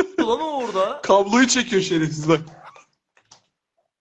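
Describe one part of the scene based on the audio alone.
A young man laughs loudly over an online call.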